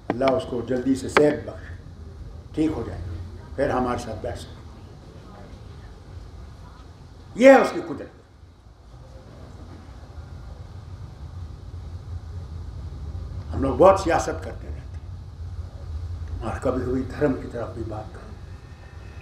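An elderly man speaks with animation into a microphone, in bursts with pauses.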